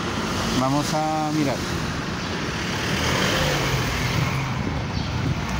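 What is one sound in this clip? A man talks nearby outdoors.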